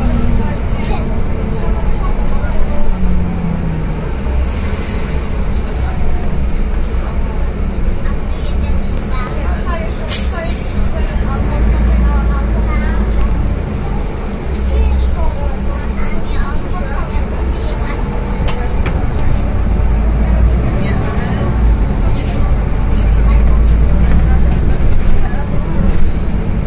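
A bus engine rumbles steadily from inside the bus as it drives.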